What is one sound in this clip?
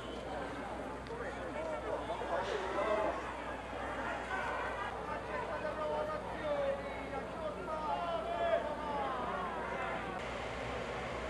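A crowd of men talks and calls out outdoors.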